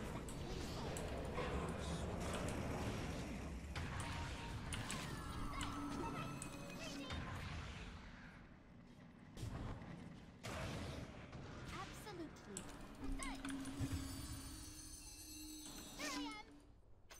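Magic blasts and crackles ring out in a video game.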